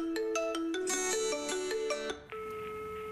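A phone plays a ringtone melody.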